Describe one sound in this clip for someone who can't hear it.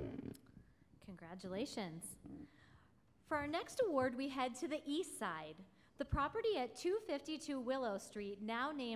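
A young woman speaks calmly into a microphone over loudspeakers.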